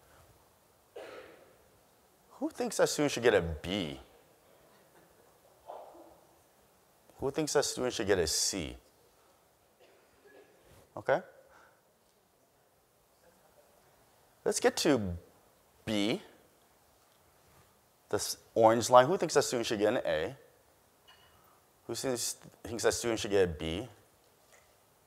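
A man speaks calmly through a microphone in a large hall, with pauses between phrases.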